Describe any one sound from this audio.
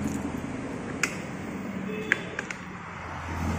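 An ignition knob clicks as it turns.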